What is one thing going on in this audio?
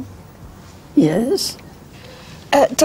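A woman speaks quietly and calmly.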